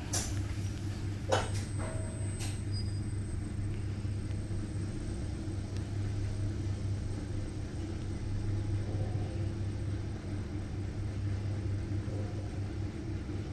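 An elevator motor hums steadily as the car descends.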